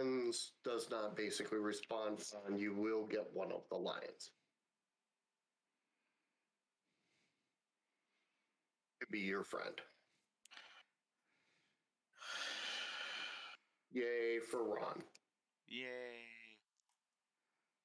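A middle-aged man talks with animation into a close microphone, with pauses.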